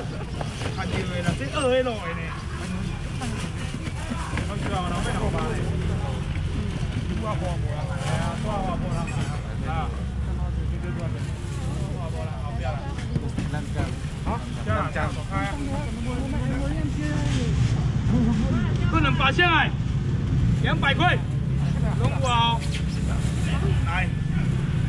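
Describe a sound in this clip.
A young man calls out loudly to customers.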